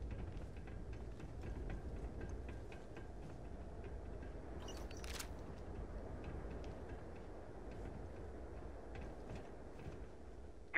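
A low wind rumbles outdoors.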